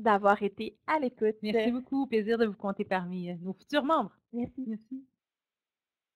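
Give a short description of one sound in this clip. A woman speaks warmly through an online call.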